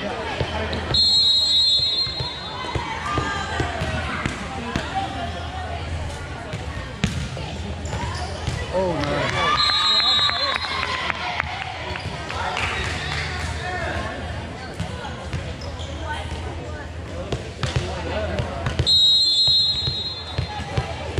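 A referee's whistle blows in short sharp bursts.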